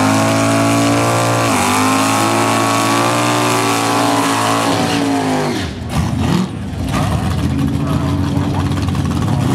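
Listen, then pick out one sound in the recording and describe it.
Tyres screech and squeal as a car does a burnout.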